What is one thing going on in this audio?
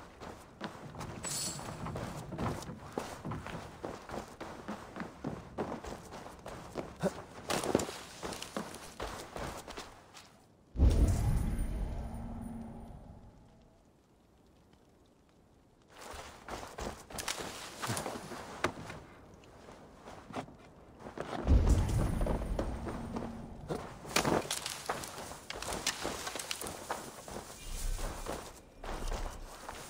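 Footsteps crunch on snow and thud on wooden boards.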